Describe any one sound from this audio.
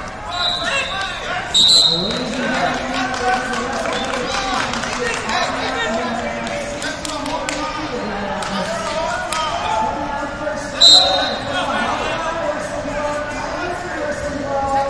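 A crowd of men and women talk and shout in a large echoing hall.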